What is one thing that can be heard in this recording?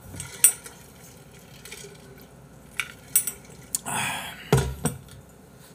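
A metal bottle clinks and knocks as it is handled.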